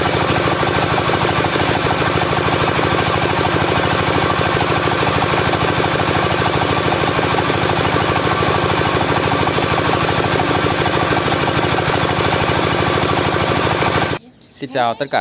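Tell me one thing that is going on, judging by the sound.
Grain pours and rattles out of a machine.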